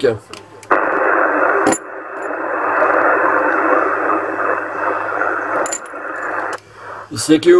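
A radio receiver hisses with a crackling, noisy transmission through its loudspeaker.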